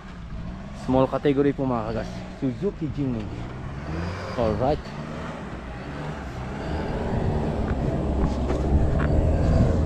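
An excavator's diesel engine rumbles close by and grows louder.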